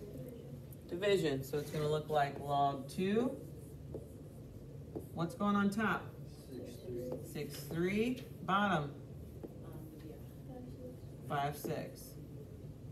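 A young woman speaks calmly and explains, close by.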